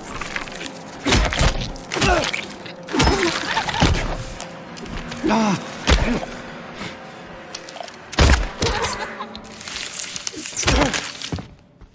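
A metal pipe strikes a creature with heavy, wet thuds.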